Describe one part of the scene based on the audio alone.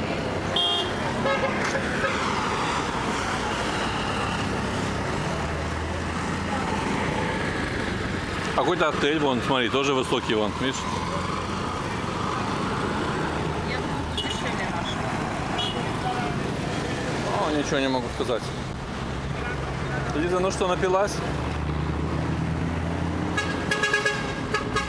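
Traffic rumbles past on a busy street outdoors.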